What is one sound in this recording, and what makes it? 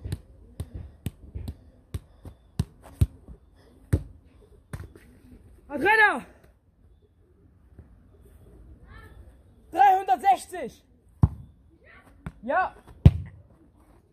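A football is kicked repeatedly with dull thumps.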